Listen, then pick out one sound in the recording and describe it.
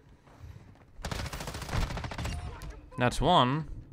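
Automatic gunfire rattles in short bursts.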